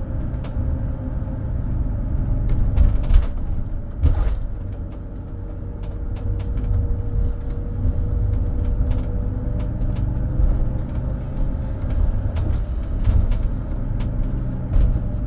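Tyres rumble and rattle over the road surface.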